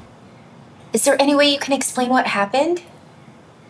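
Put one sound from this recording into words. A woman asks a question calmly.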